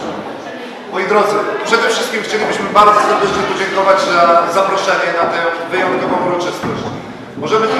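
A middle-aged man speaks up loudly to a gathering, close by.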